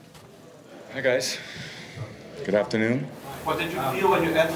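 A man speaks into a microphone over a loudspeaker in an echoing room.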